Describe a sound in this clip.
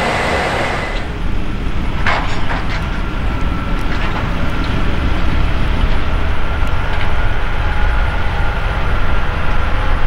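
Wind rumbles across open ground outdoors.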